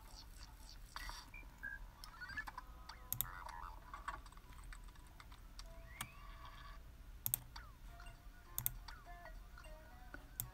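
Electronic game sounds beep and chirp.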